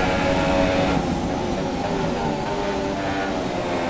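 A racing car engine drops in pitch as the car slows.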